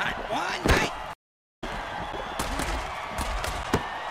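Players collide with heavy thuds.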